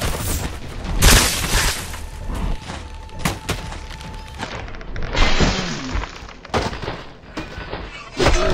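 A heavy sword swings and slashes through the air.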